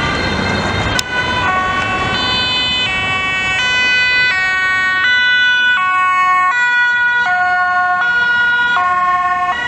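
A two-tone ambulance siren wails as an ambulance approaches and passes.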